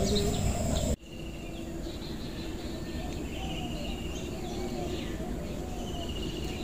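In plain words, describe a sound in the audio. Bees hum steadily around a hive.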